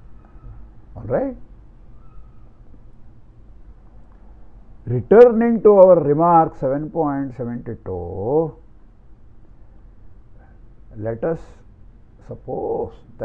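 An elderly man lectures calmly into a close microphone, with pauses.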